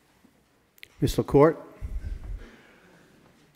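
A middle-aged man speaks briefly into a microphone.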